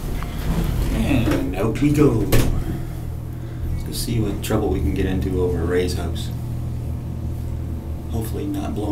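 A middle-aged man speaks close up with animation.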